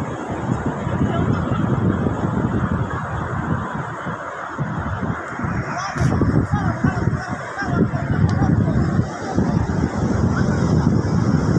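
Waves wash onto a beach in the distance.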